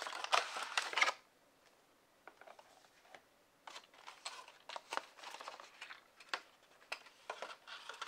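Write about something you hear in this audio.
A plastic blister pack crinkles and crackles in hands.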